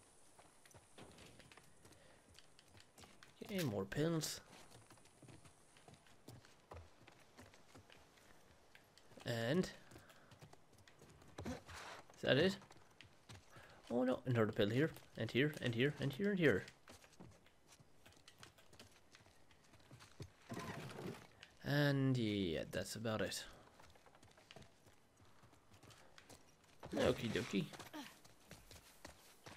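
Footsteps tread slowly on a wooden floor.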